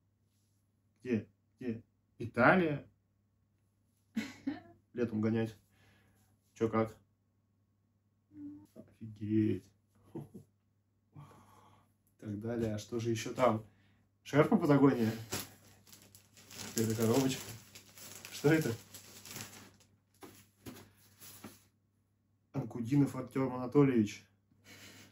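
A young man talks in a calm, friendly way, close by.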